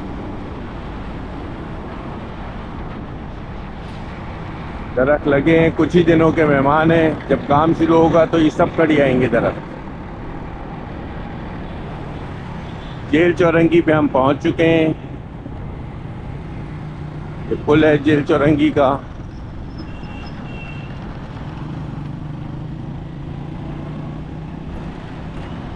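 A motorcycle engine hums as the motorcycle rides along a city road.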